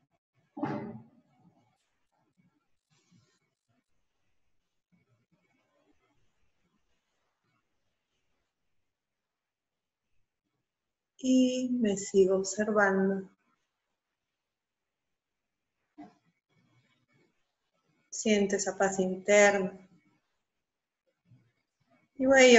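A woman speaks calmly and slowly in short phrases, close to a microphone.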